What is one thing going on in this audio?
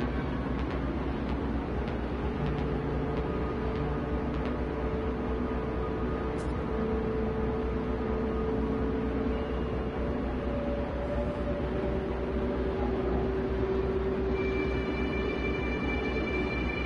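A spaceship engine hums steadily in flight.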